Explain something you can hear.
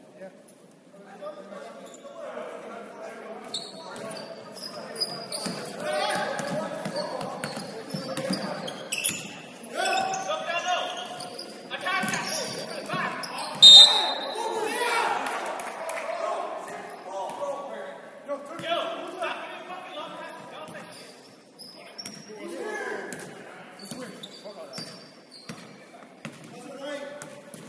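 Players and spectators call out, echoing in a large hall.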